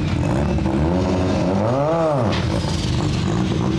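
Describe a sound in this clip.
A race car roars past at full speed nearby.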